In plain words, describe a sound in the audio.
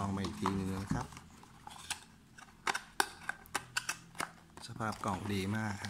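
Cardboard packaging rustles and taps under handling fingers.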